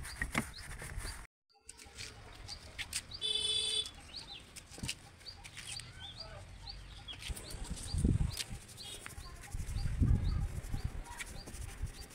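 A cloth rubs over a car's body panels.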